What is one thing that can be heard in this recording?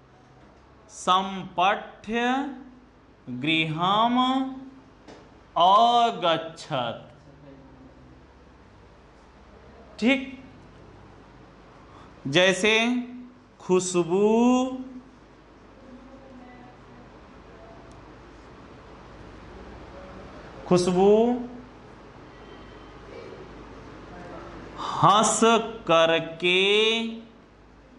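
A young man speaks in short bursts, explaining calmly.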